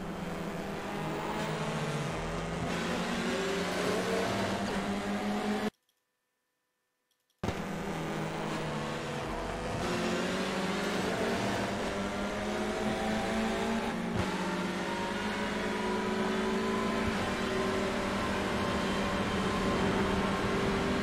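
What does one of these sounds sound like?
A racing car engine roars loudly, its pitch climbing through the gears.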